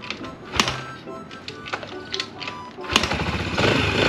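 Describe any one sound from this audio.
A motorcycle's kick starter is stomped with clanks.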